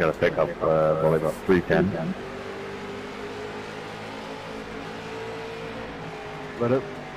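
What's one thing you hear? Race car engines drone steadily.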